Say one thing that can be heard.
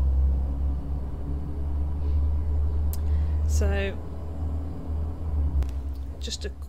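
A car engine rumbles low and steadily from inside the car.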